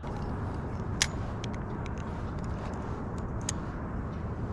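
A fishing reel clicks and whirs as line is wound in.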